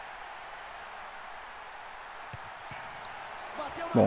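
A football is kicked with a dull thump.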